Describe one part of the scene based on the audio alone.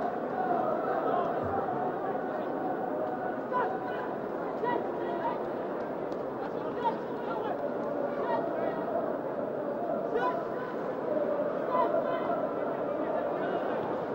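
A large stadium crowd murmurs and calls out steadily.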